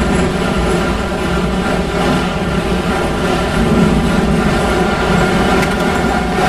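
A subway train rumbles steadily through a tunnel.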